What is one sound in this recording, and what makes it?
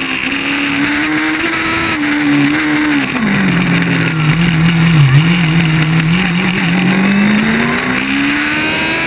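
A race car engine drones up close, dropping in pitch around a bend and then revving back up.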